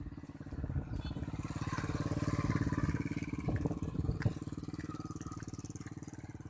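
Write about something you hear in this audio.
A motorbike engine hums as it passes close by.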